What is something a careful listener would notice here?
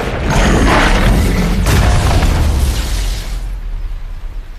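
Flames roar in a loud rushing blast.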